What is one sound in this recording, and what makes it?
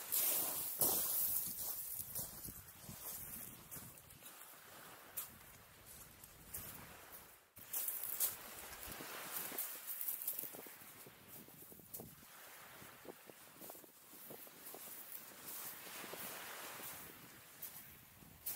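Pebbles crunch underfoot as a man walks.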